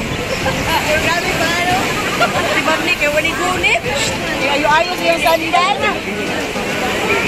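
A middle-aged woman laughs loudly close by.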